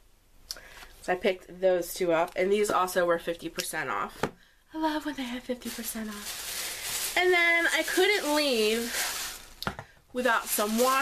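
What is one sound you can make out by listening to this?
A woman talks with animation, close to a microphone.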